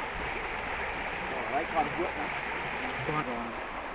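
A shallow stream babbles and trickles over stones.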